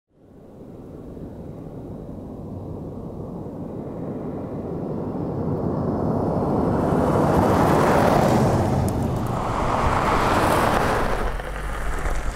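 A car approaches with a rising engine roar and passes close by.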